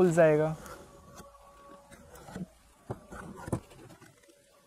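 A blade scrapes and clicks against hard plastic.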